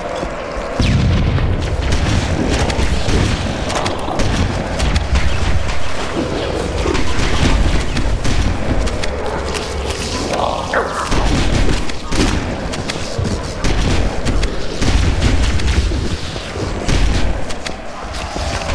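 Rapid gunfire bursts from an automatic rifle.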